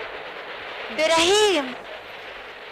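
A woman cries out briefly and close by.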